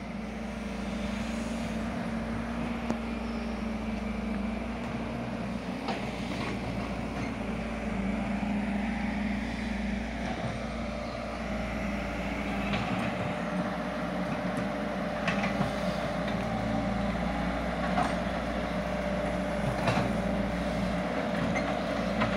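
An excavator engine rumbles steadily in the distance.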